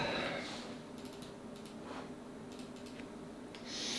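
Computer keys click softly.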